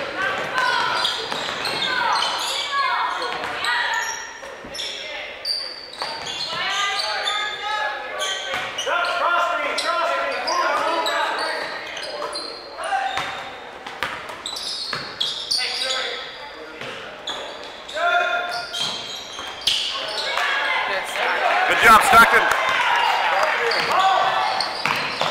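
A crowd of spectators talks and cheers in an echoing gym.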